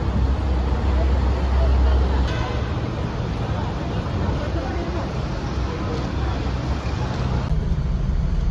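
A crowd murmurs outdoors in traffic noise.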